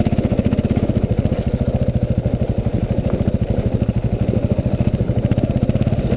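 A dirt bike engine revs loudly and steadily close by.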